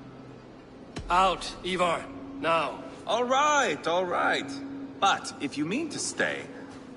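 A man speaks firmly, close up.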